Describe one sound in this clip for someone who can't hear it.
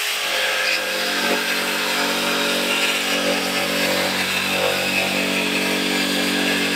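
An electric jigsaw buzzes steadily as it cuts through a wooden board.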